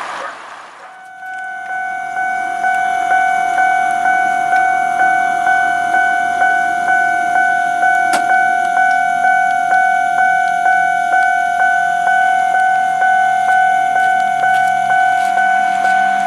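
A level crossing bell rings in rapid, steady dings.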